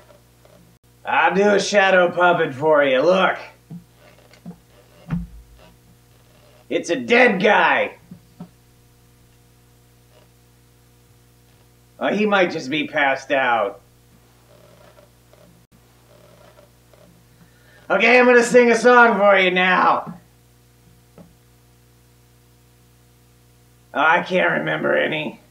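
A man speaks loudly and theatrically into a microphone in short bursts.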